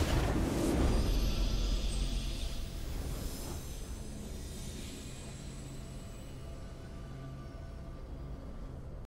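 A triumphant game fanfare plays and slowly fades.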